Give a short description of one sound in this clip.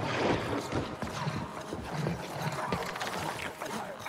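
A creature snarls and screeches.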